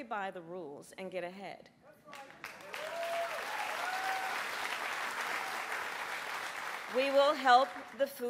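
A woman speaks firmly into a microphone over loudspeakers.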